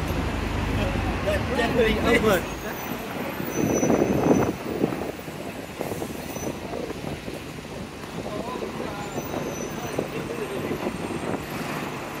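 Traffic rumbles past on a nearby street outdoors.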